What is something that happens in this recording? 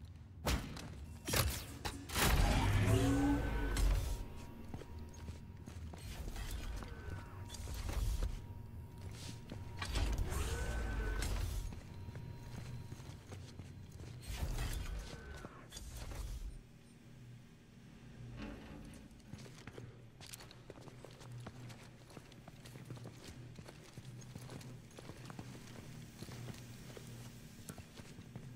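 Heavy boots thud on a metal floor.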